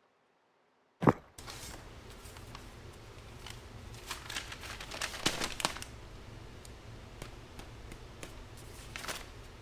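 Paper crinkles and rustles as it is handled.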